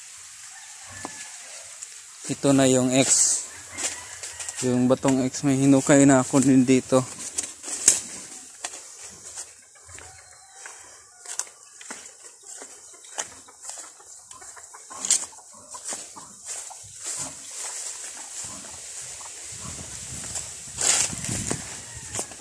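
Footsteps rustle and crunch through grass and dry leaves outdoors.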